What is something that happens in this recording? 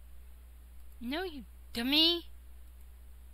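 A woman speaks briefly close to a microphone.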